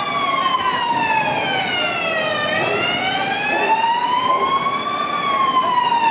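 A siren wails close by, slowly falling and rising in pitch.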